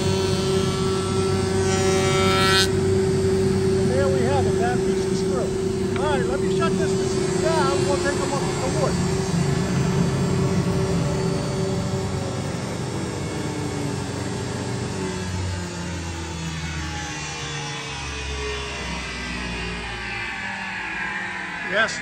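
A woodworking machine hums and whirs steadily, then winds down.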